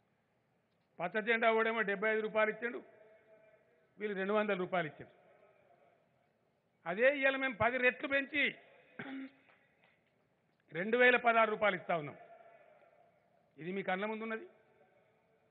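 An elderly man speaks forcefully in bursts through a microphone and loudspeakers, echoing outdoors.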